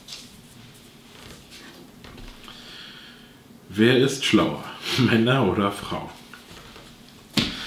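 Paper rustles as a man handles it.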